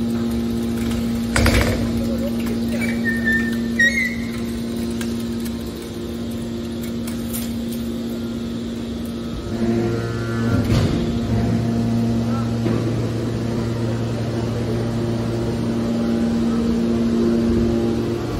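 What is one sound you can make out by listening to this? A hydraulic machine hums and drones steadily.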